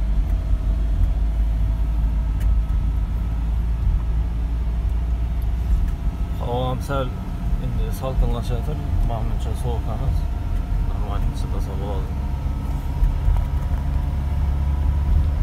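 A truck's engine drones at highway speed, heard from inside the cab.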